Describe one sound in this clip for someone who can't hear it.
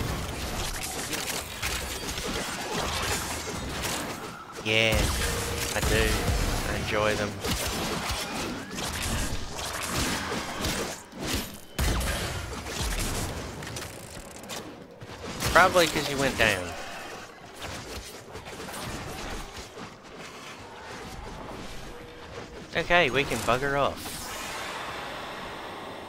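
Blades swing and slash through the air in quick bursts.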